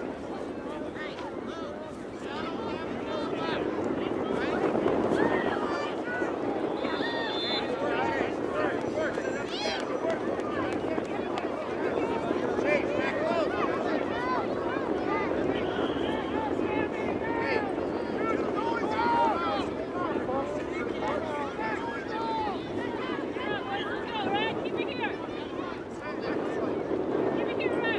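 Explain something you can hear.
Young players call out to each other across an open field.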